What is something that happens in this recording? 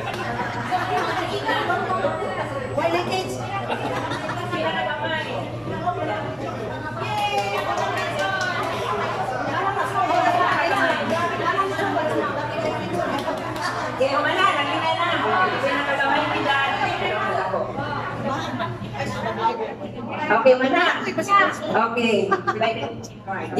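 A crowd of elderly women and men chatter and laugh nearby in an echoing hall.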